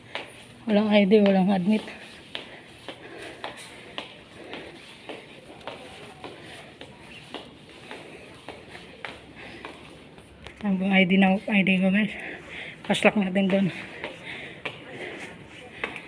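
Footsteps tap on a hard floor.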